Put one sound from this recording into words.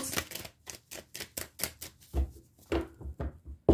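Playing cards tap and rustle softly.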